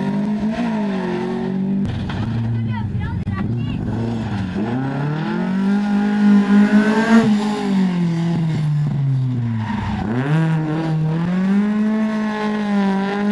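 A rally car engine roars loudly, revving up and down as the car speeds past.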